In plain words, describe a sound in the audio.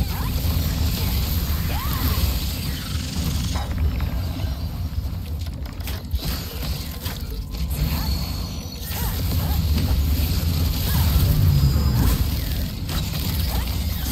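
Fiery explosions roar and crackle.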